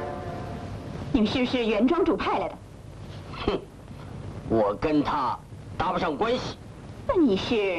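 A young woman speaks sharply.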